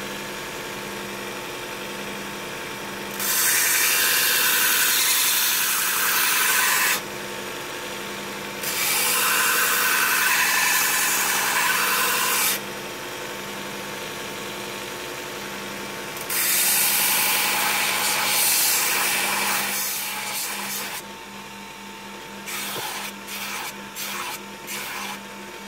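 A belt sander hums steadily.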